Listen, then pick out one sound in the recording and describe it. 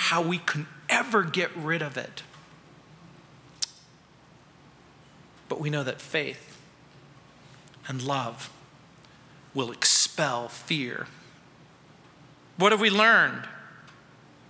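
A middle-aged man speaks with animation through a microphone, in bursts with pauses.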